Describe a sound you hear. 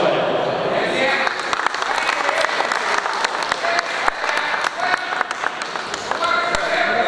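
A group of men applaud in an echoing hall.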